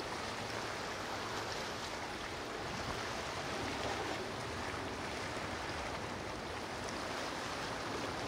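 A motor yacht's engine rumbles steadily as it cruises past.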